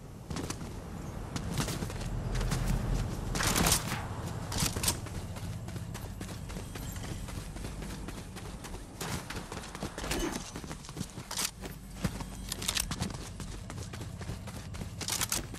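Footsteps run quickly over dirt and pavement.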